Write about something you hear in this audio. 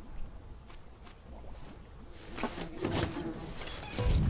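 A vehicle door creaks open and clunks shut.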